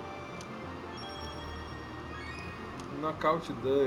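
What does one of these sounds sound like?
A short bright jingle chimes as an item is picked up.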